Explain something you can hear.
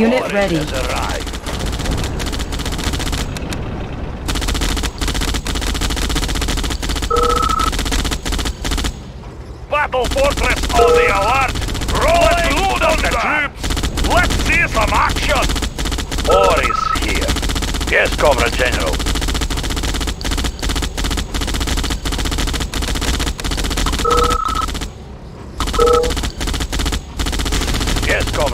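Small arms fire in rapid bursts.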